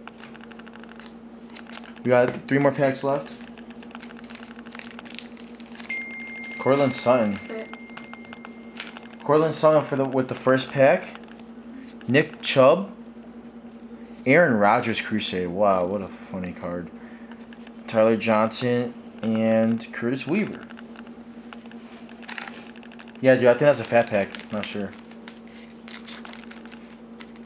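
Trading cards in plastic sleeves rustle and click as they are handled.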